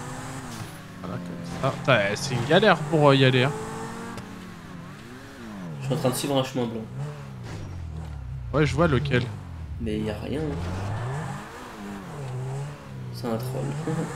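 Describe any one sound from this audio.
A sports car engine revs up and down.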